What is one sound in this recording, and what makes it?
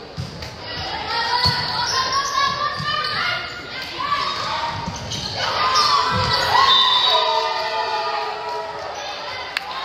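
Young women players call out and shout to each other.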